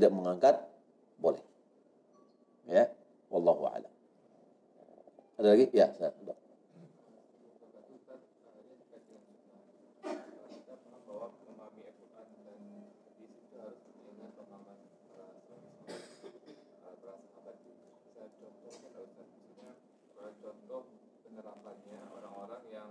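A middle-aged man speaks calmly into a close microphone.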